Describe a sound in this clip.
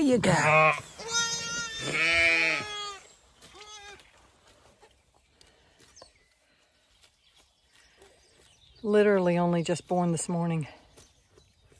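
Young lambs bleat loudly close by.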